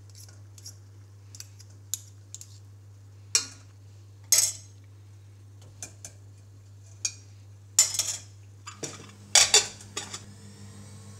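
Metal spoons scrape and clink against a metal pot.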